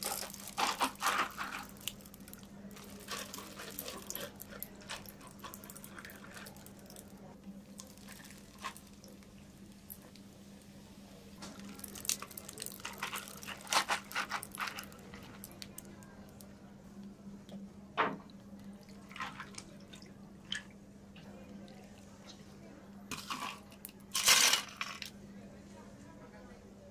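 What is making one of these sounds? Liquid pours over ice in a plastic cup.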